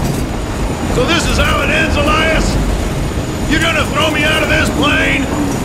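A second man speaks in a strained, mocking voice nearby.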